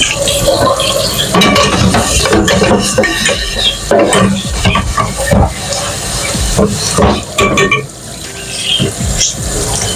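Dishes clatter and clink in a sink.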